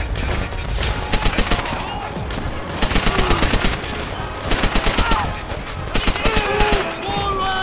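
A submachine gun fires in short, rapid bursts close by.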